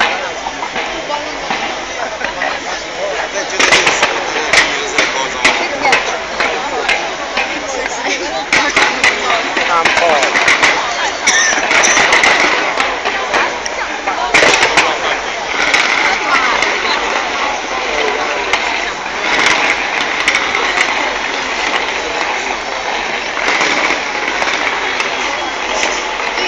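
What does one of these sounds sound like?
Fireworks bang and crackle again and again.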